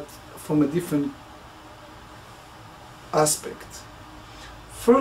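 A middle-aged man speaks calmly and close into a microphone, in short phrases.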